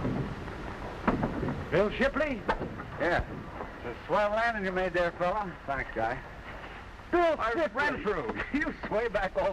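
Men talk with animation nearby.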